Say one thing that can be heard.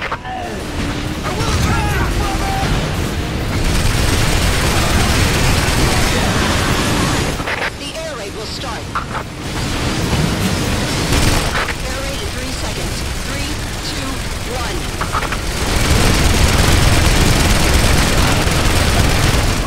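Explosions boom and roar loudly.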